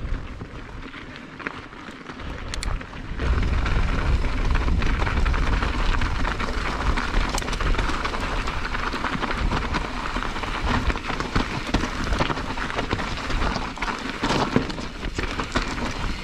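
Bike tyres crunch and rattle over loose gravel.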